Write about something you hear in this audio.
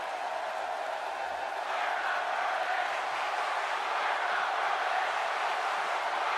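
A large crowd murmurs and cheers steadily in an arena.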